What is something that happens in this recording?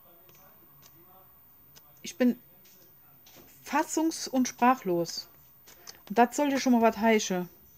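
Stiff paper pages flip and rustle.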